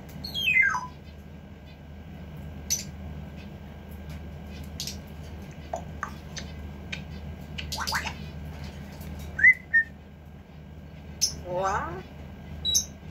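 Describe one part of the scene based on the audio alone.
A parrot whistles, squawks and chirps close by.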